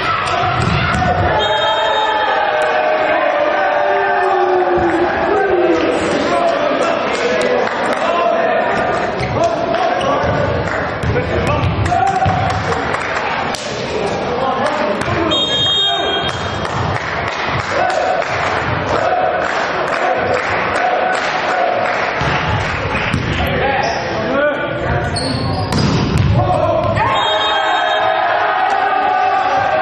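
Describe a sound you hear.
Sports shoes squeak on a hall floor.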